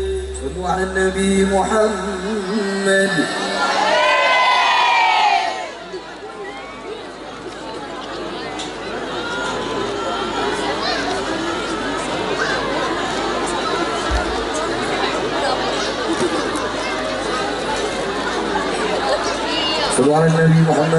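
A young man sings through a microphone over loudspeakers.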